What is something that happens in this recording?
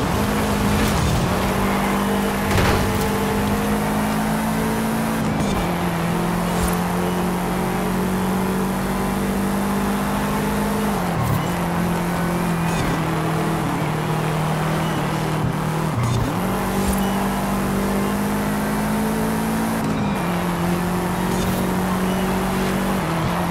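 Tyres hiss on tarmac at speed.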